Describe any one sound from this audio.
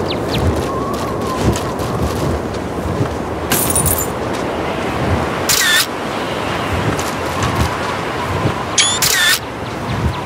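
A hen clucks close by.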